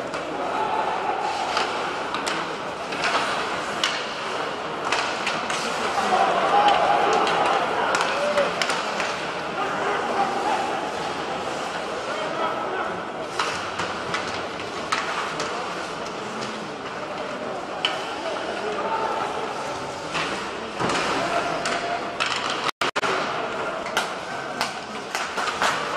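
Sticks click against the puck and ice.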